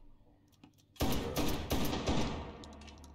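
A shotgun fires loudly.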